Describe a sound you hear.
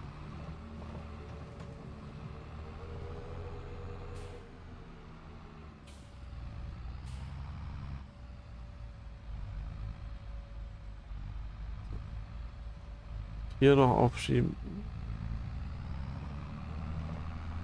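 A tractor engine drones while driving.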